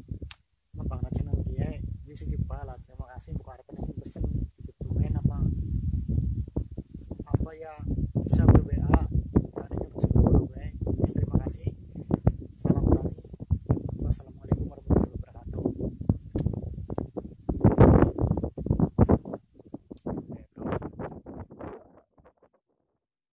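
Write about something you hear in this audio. A young man talks calmly and close to a microphone, outdoors.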